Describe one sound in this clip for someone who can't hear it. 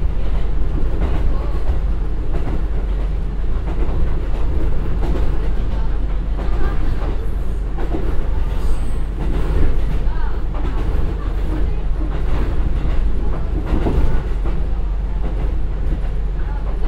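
A diesel train engine drones steadily.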